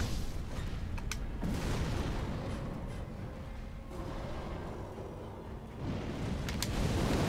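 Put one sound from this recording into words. Flames roar with a deep rumble.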